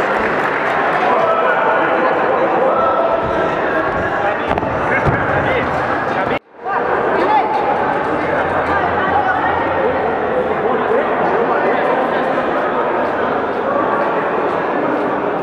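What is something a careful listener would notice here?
Voices of men and women talk and call out close by.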